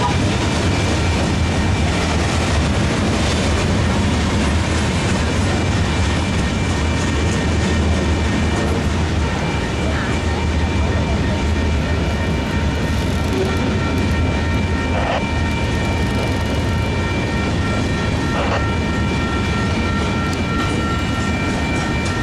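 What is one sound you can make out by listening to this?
A freight train rumbles and clatters steadily past nearby.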